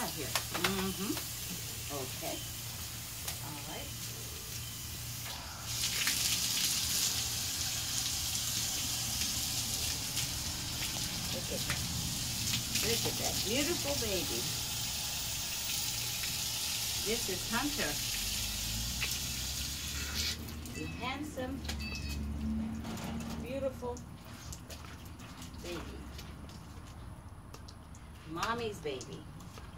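A young woman talks softly and sweetly to a dog close by.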